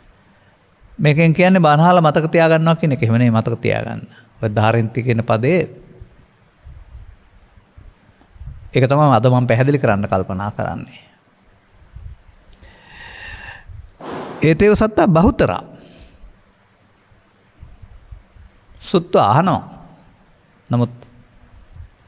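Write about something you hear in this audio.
An elderly man speaks calmly into a microphone, in bursts with pauses.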